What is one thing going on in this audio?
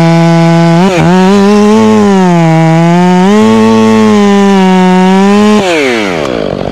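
A chainsaw roars loudly close by, its pitch rising and falling.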